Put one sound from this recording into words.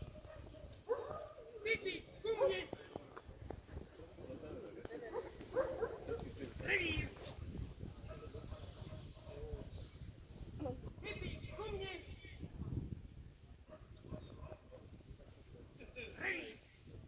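A man calls out commands to a dog from a distance outdoors.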